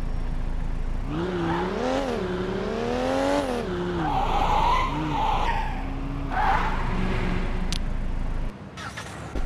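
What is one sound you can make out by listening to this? A game car engine idles and revs up and down at low speed.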